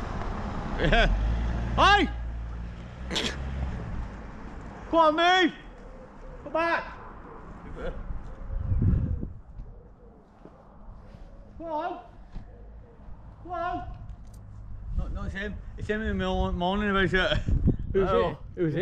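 A middle-aged man talks animatedly outdoors, sometimes near and sometimes farther away.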